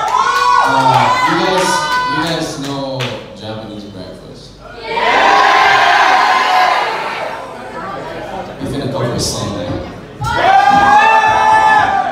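A singer sings into a microphone over the band.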